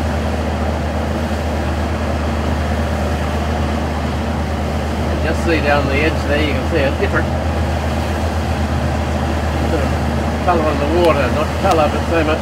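A boat engine drones steadily.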